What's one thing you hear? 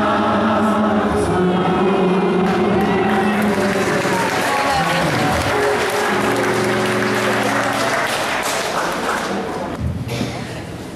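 A man sings loudly through a microphone and loudspeakers in an echoing hall.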